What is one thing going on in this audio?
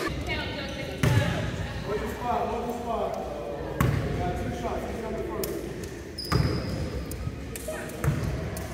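A basketball bounces on a hardwood floor, echoing.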